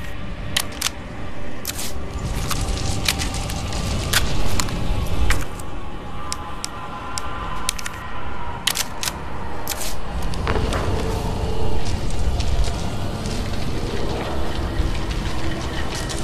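Footsteps clank on a metal walkway.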